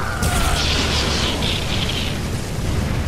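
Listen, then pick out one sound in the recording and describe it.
Magical energy crackles and roars.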